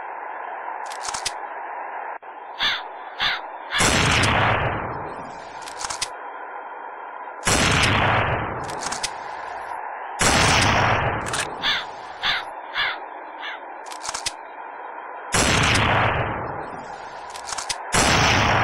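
A rifle bolt clicks and clacks as it is reloaded.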